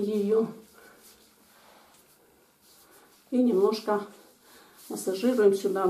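Hands rub and knead bare skin softly.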